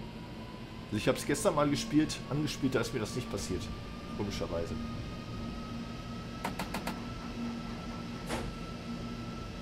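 Train wheels clatter over rail joints and points.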